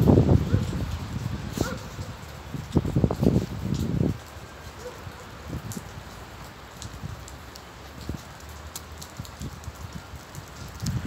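Wind gusts roar against the microphone outdoors, strongest at first and then easing.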